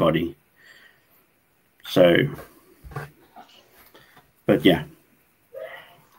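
A middle-aged man speaks calmly in short phrases, heard through an online call.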